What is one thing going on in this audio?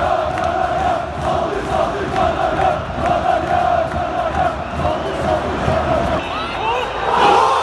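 A large stadium crowd chants loudly in unison.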